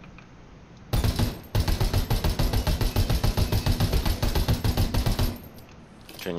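A rifle fires in rapid bursts with loud, rattling shots.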